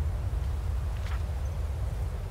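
A page of a book turns with a quick rustle.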